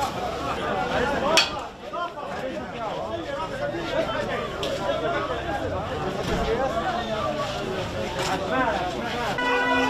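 A crowd of men shout and talk over each other outdoors.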